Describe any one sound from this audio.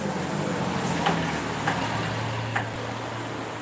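A knife chops on a cutting board in slow, single strokes.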